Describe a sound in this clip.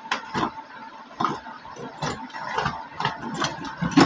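A screwdriver turns a small screw into a plastic housing.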